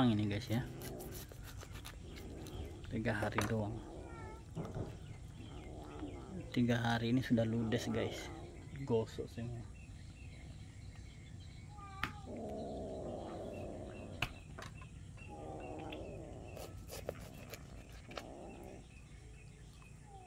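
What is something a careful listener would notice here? A knife scrapes scales off a fish with short rasping strokes.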